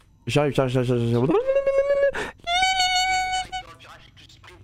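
A handheld radio gives out loud warbling electronic tones.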